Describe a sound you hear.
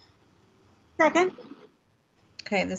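A woman asks a short question over an online call.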